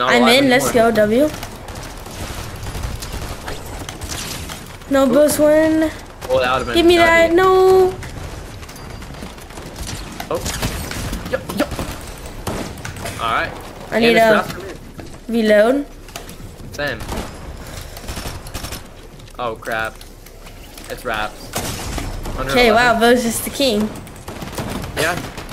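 Keys clatter rapidly on a keyboard.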